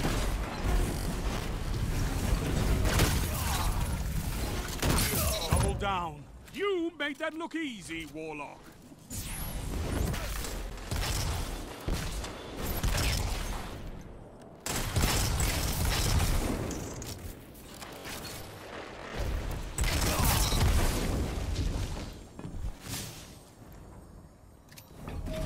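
Gunfire bursts out in rapid, loud volleys.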